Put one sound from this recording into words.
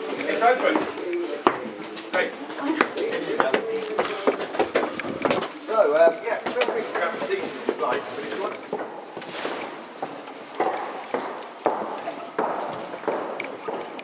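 Footsteps tap on a hard floor while walking.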